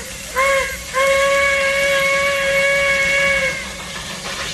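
A steam whistle blows a long, steady note.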